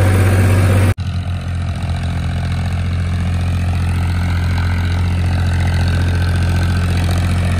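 A diesel tractor pulling a rotavator rumbles from a distance.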